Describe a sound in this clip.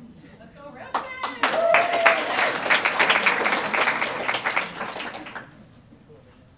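An audience claps in a large room.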